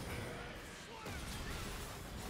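Fiery blasts roar and burst.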